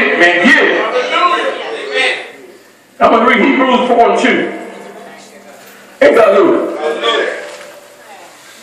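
A man speaks loudly and forcefully through a microphone in an echoing room, in short bursts.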